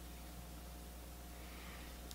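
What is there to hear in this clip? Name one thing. A makeup brush brushes softly on skin.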